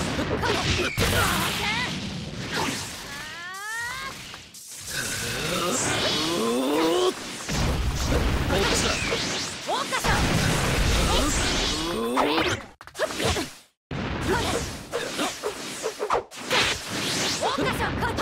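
Fighters in a video game clash with sharp hits and whooshing blasts.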